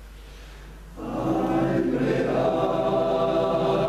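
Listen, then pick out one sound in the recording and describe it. A men's choir sings together in a reverberant hall.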